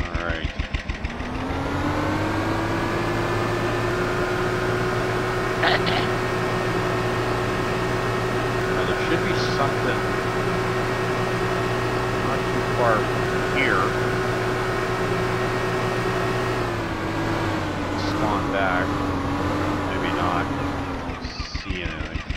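A small outboard motor revs up and drones steadily as a boat moves across water.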